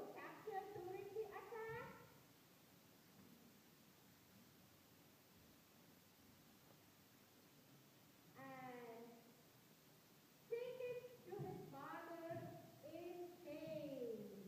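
Young children speak in short bursts through a loudspeaker in a large echoing hall.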